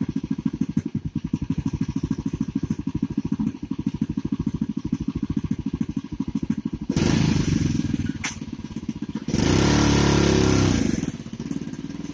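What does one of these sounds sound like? A small engine idles with a rapid steady putter.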